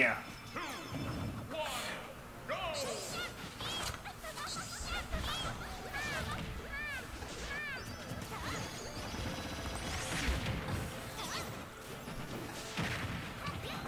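Blows and blasts clash in a fast video game fight.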